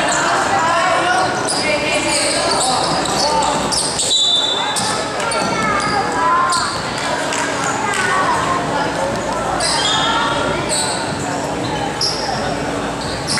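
Children shout and chatter in a large echoing hall.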